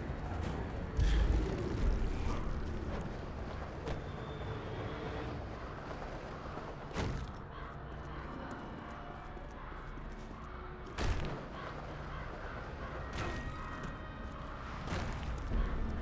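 Heavy thuds land on rooftops.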